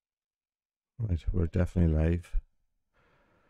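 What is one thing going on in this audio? A middle-aged man speaks briefly up close into a microphone.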